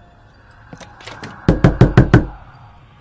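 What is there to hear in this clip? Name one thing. Loud knocks bang on a wooden door.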